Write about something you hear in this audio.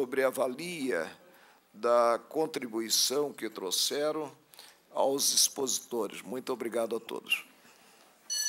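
An older man speaks calmly and formally into a microphone.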